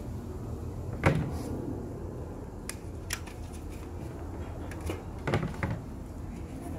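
Items knock and clatter sharply close by.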